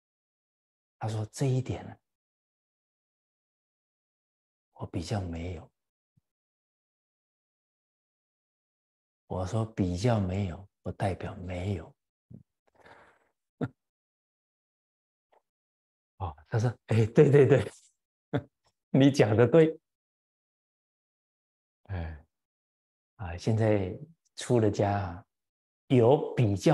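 An elderly man speaks calmly and warmly, close to a microphone, with long pauses.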